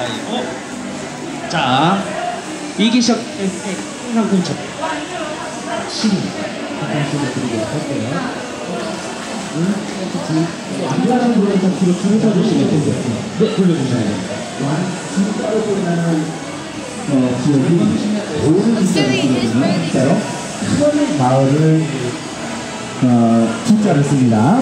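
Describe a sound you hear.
Many people talk at once in a large echoing hall.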